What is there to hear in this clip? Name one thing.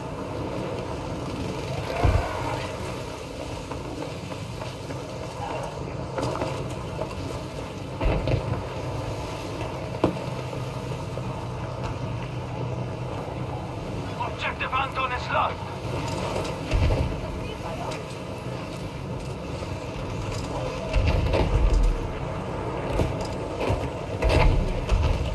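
Wind howls steadily through a sandstorm.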